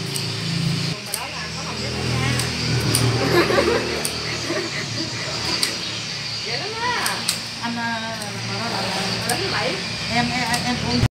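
Women talk calmly close by.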